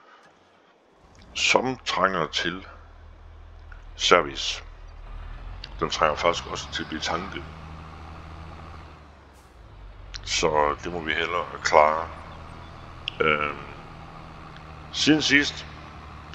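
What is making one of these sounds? A tractor engine rumbles steadily, low and deep.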